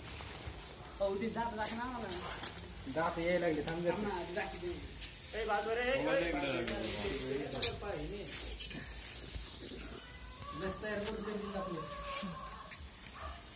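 A man talks loudly nearby.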